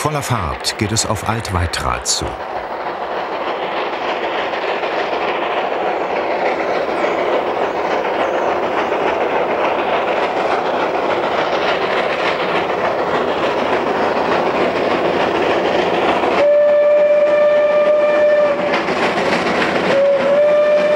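A steam locomotive chugs and puffs steadily, growing louder as it approaches.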